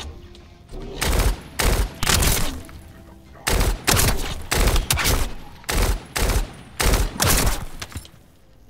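Gunshots fire in short, loud bursts.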